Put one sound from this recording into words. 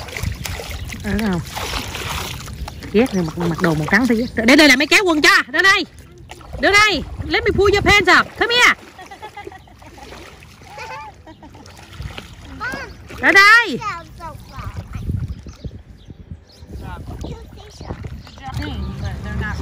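Water splashes around small feet wading in shallows.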